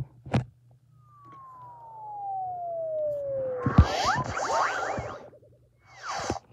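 A handheld game console plays a short startup chime.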